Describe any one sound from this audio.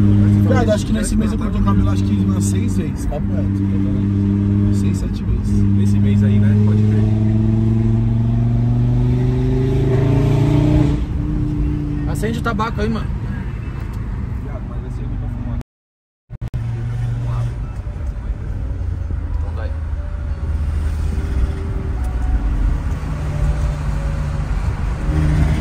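A car engine hums steadily and rises in pitch as it speeds up.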